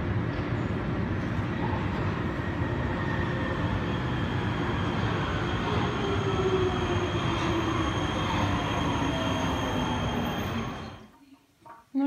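A metro train pulls into an underground station with a loud rumble and a falling whine of brakes, echoing off the walls.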